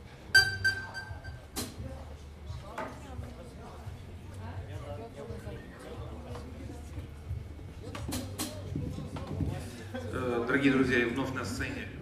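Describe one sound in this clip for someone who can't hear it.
A bass guitar plucks low notes.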